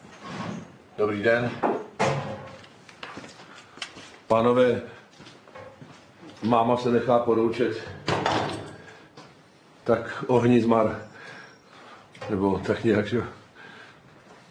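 An elderly man talks calmly, close by.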